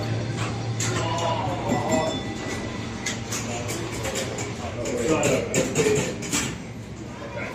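A young man talks nearby over the machine noise.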